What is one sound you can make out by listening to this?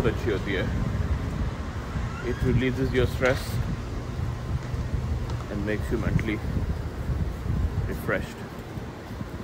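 A young man talks calmly and close to a microphone, outdoors in wind.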